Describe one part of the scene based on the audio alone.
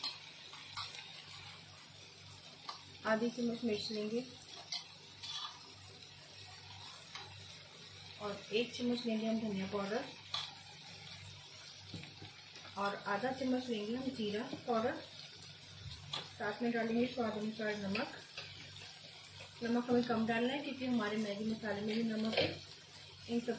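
Chopped vegetables sizzle softly in a frying pan.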